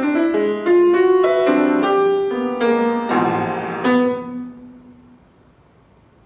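A grand piano plays a lively passage, then falls quiet.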